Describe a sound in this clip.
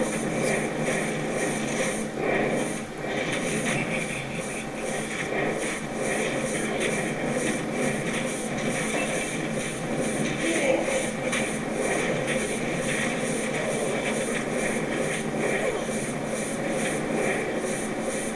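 Fire spells roar and crackle in quick bursts.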